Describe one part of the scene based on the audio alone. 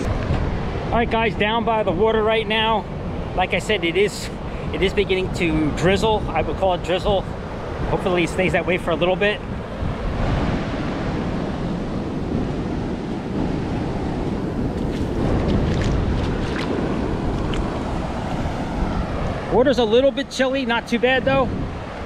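A middle-aged man talks with animation close to a microphone, outdoors in wind.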